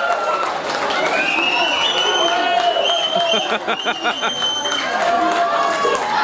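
Young men shout excitedly in celebration.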